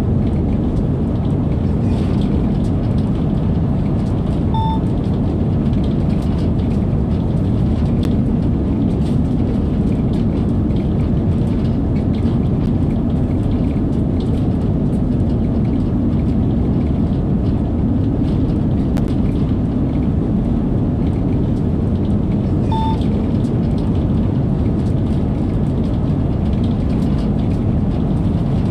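A train rumbles steadily at speed through a tunnel.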